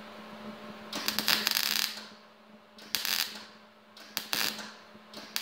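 A welding arc crackles and buzzes in short bursts.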